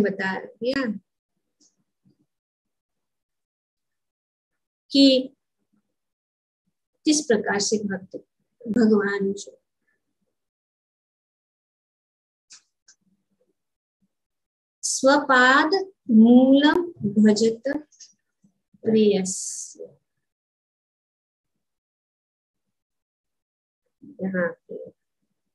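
An elderly woman speaks calmly in short phrases over an online call.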